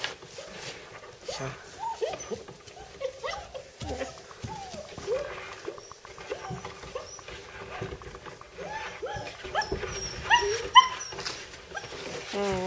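A puppy whimpers and whines close by, again and again.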